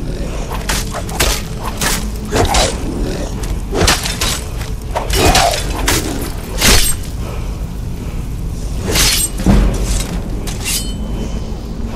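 Weapons strike with sharp clanging blows.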